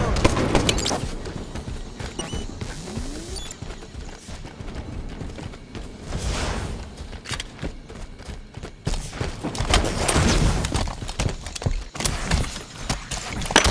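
Rapid gunshots crack in short bursts.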